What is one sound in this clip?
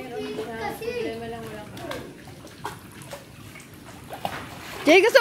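Water splashes gently in a pool.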